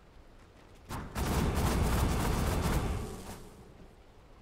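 Magic spells whoosh and crackle during a game battle.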